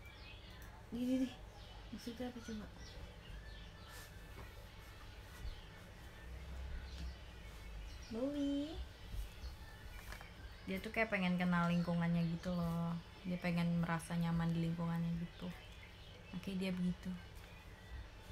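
A young woman speaks softly and close by, with pauses.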